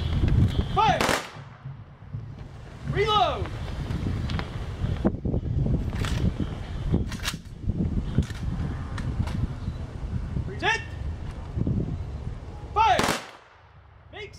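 Rifles fire sharp volleys outdoors, each followed by a ringing echo.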